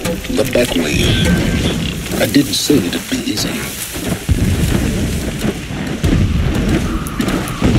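Leaves and tall grass rustle as someone creeps through them.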